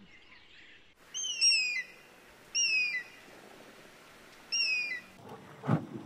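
An eagle gives sharp, high, falling cries.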